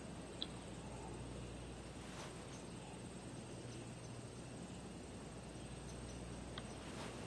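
A golf club swishes and strikes a ball.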